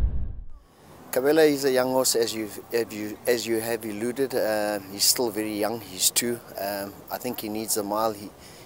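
A middle-aged man speaks calmly into a close microphone outdoors.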